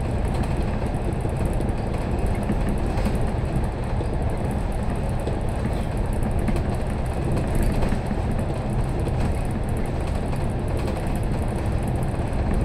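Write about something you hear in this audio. A vehicle's engine hums steadily as it drives through an echoing tunnel.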